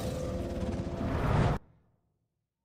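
A magical portal roars and crackles loudly.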